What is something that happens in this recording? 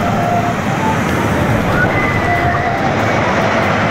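Riders scream as the roller coaster rushes down.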